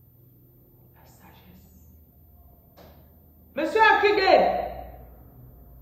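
A woman speaks close by, briefly and with animation.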